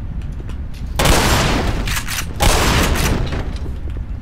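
Gunshots bang loudly in an echoing space.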